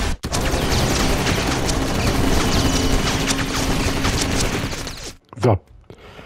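Gunfire rattles in rapid bursts.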